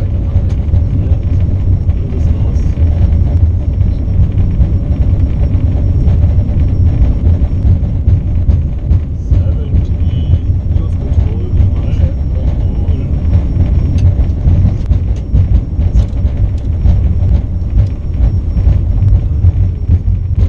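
An airliner's wheels thump and rattle over the runway.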